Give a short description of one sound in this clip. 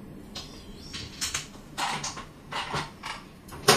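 Plastic tiles slide across a tabletop.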